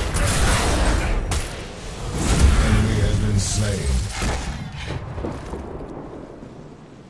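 A magical ice blast crackles loudly.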